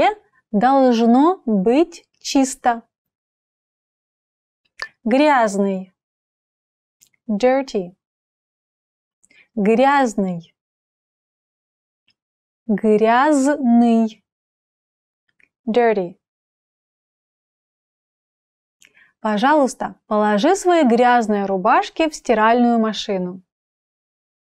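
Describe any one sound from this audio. A young woman speaks clearly and slowly into a close microphone, pausing between words.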